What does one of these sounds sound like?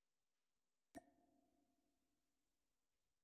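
A short metallic clack rings out briefly.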